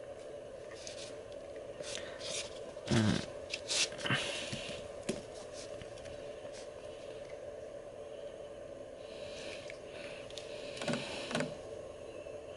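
Headphones rustle and knock softly as they are handled.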